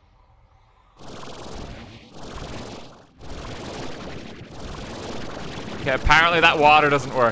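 A water gun sprays with a steady, hissing splash.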